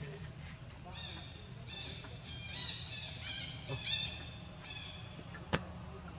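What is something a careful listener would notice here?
A baby monkey squeaks in short high calls.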